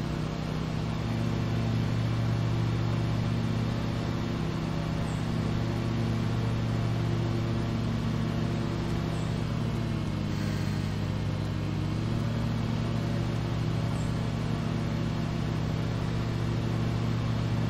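Mower blades cut through grass with a swishing whir.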